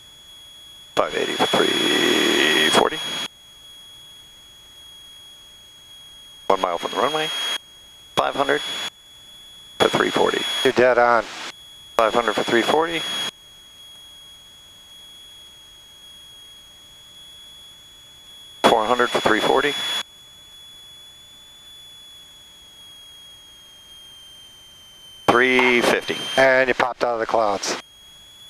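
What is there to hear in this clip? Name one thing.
A man speaks through a headset intercom in short bursts.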